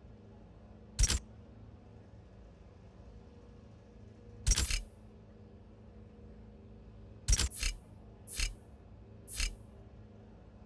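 Short interface clicks sound now and then as menu options are selected.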